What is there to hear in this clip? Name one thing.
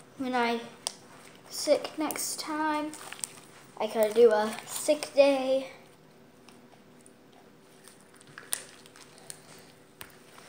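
Slime squishes and stretches under a girl's hands.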